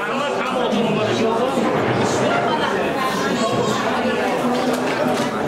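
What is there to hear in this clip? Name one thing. A crowd of men and women chatters and talks loudly in a busy room.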